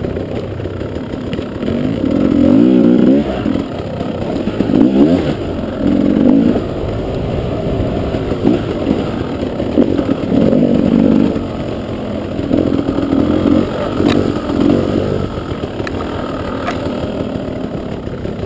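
A dirt bike engine close by revs up and down.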